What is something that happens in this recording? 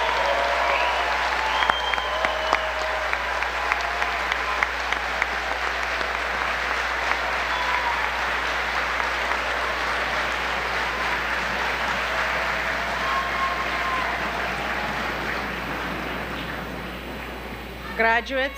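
A large crowd applauds and cheers in a big echoing hall.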